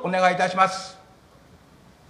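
An elderly man speaks briefly through a microphone.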